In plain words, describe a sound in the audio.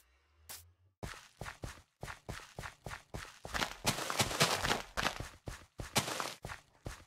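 Seeds are planted in soil with rapid soft taps.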